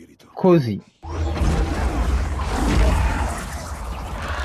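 A deep magical energy swirls with a loud, rumbling whoosh.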